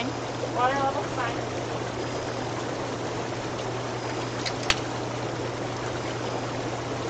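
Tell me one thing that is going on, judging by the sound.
Water bubbles and churns steadily in a hot tub.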